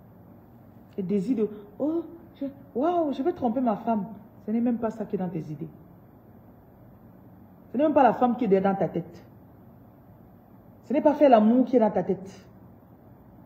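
A woman speaks close to the microphone in short, emotional bursts with pauses.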